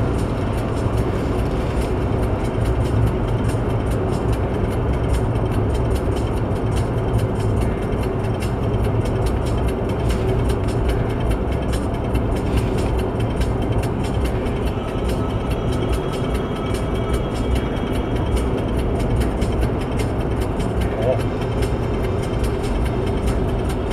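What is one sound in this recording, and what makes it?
Tyres rumble and hiss on a wet, slushy road.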